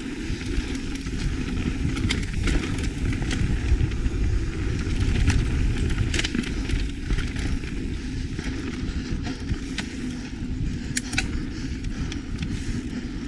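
Wind rumbles against a fast-moving bicycle.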